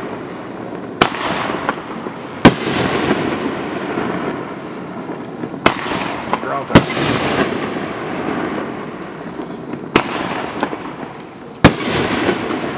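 Fireworks explode with loud sharp bangs, echoing off into the distance.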